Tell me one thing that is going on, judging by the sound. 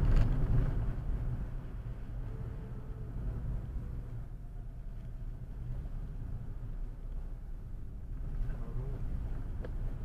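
A car engine hums steadily from inside the car as it drives along a road.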